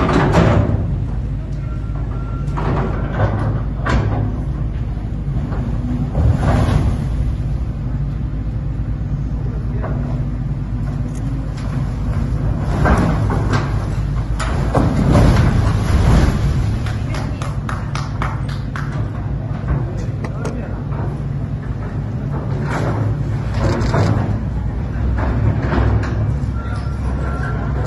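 Loose soil and stones pour down with a steady low rumble.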